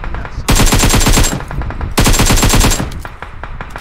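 Rapid gunfire rattles in two loud bursts.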